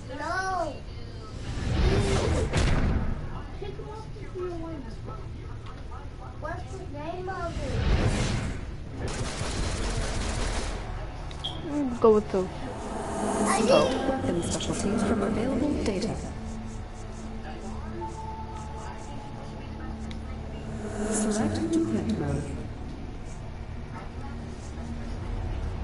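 Electronic whooshing sound effects play as menu choices change.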